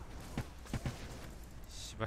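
Lightning crackles and zaps.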